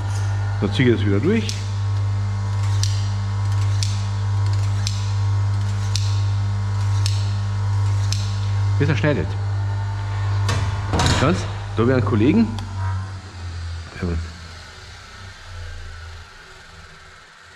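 A bench grinder hums steadily, then winds down.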